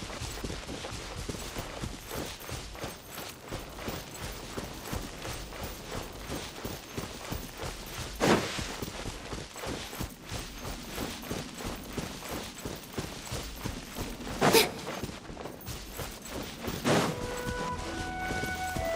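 Footsteps patter quickly on grass and earth.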